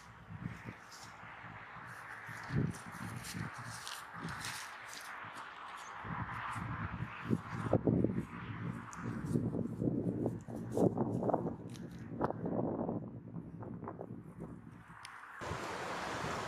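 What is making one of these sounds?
Footsteps swish through wet grass close by.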